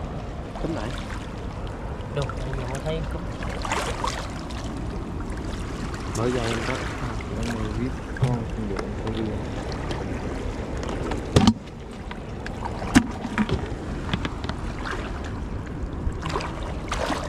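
Water splashes and trickles over rocks as a hand reaches in.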